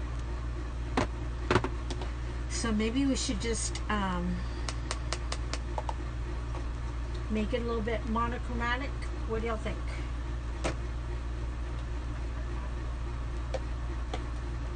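Small plastic jars click and knock on a tabletop.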